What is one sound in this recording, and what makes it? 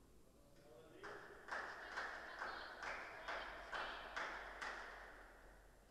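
A tennis ball is hit back and forth with rackets in a large echoing hall.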